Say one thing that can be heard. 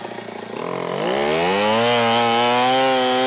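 A chainsaw cuts into a log.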